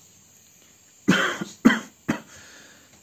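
A young man coughs into his hand.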